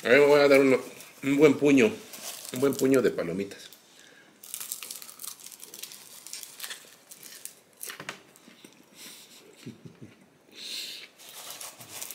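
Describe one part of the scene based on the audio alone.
Popcorn rustles as a hand digs into a metal bowl.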